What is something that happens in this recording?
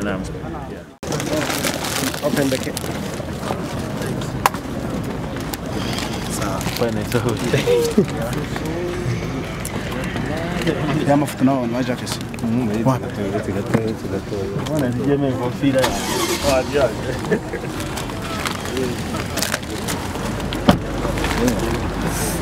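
A crowd of men talk and call out over one another outdoors.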